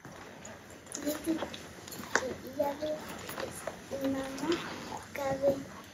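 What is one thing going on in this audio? A young girl speaks softly and calmly close by.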